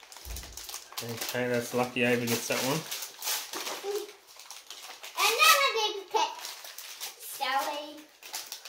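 A young child talks with excitement nearby.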